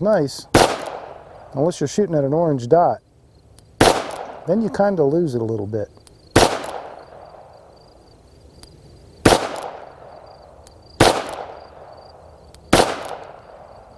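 A revolver fires loud shots outdoors, each one ringing out and fading.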